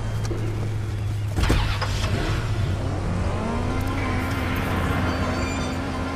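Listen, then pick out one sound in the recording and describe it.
A car engine revs and roars as the car pulls away.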